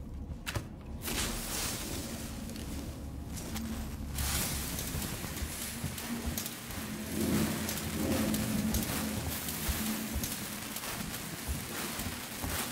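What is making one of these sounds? A flare sputters and hisses steadily.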